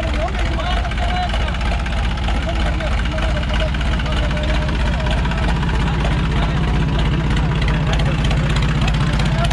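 A tractor engine chugs loudly and steadily close by.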